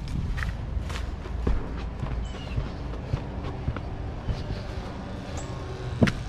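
Footsteps scuff on concrete outdoors.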